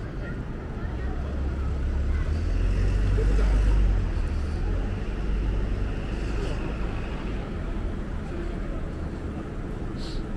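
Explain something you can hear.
A van engine rumbles nearby, then fades.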